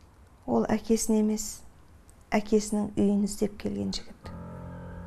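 A woman speaks with animation close by.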